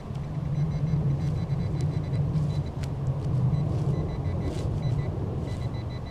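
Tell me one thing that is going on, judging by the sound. A metal detector beeps in short, repeated pulses.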